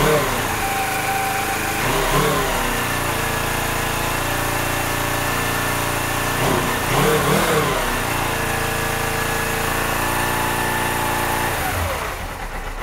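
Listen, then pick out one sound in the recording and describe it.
A motorcycle engine idles with a steady, close rumble.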